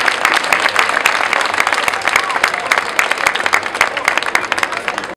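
A large crowd claps outdoors.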